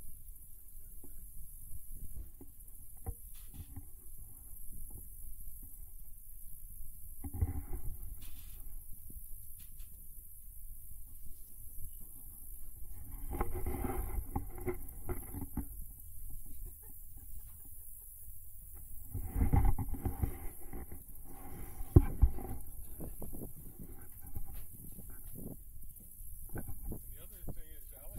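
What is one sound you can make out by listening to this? Wind blows softly.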